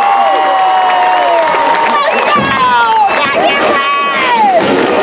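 A marching band plays loud brass outdoors.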